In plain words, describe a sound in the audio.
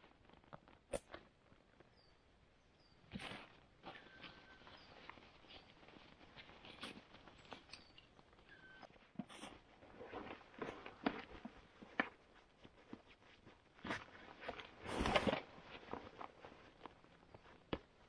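Straps and buckles of a backpack rustle and click.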